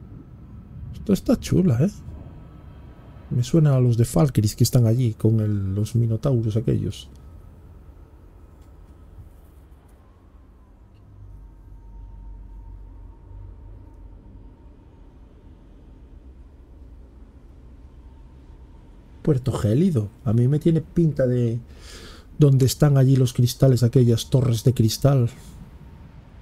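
A middle-aged man talks with animation, close to a microphone.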